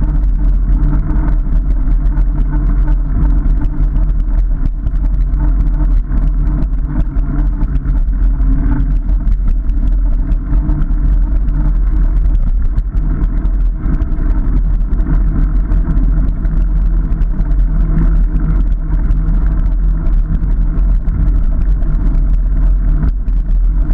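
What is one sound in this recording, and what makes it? Tyres rumble and rattle over a bumpy dirt track.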